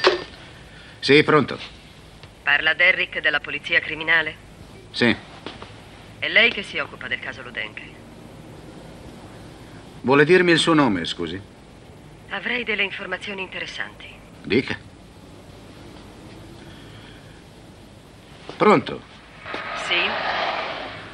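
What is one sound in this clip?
An elderly man speaks calmly into a telephone handset.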